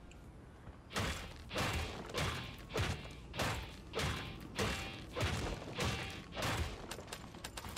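A sledgehammer strikes a wooden wall again and again in quick, even blows.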